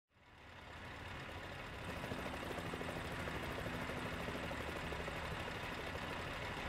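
A heavy truck engine idles with a steady low rumble.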